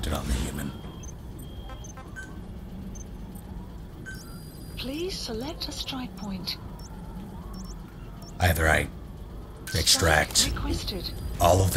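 Short electronic menu beeps chime now and then.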